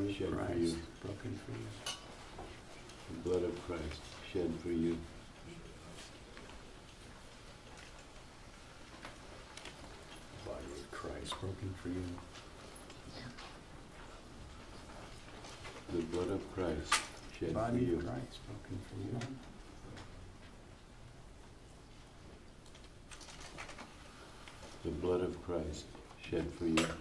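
An elderly man speaks softly in short phrases, close by.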